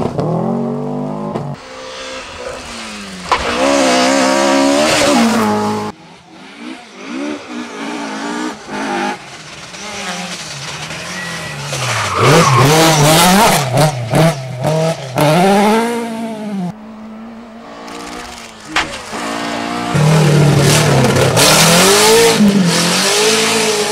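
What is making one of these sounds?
Rally car engines roar and rev hard as they pass close by, changing gear.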